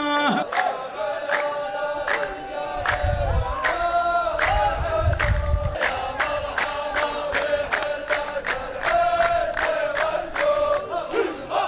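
A group of men claps in a steady rhythm.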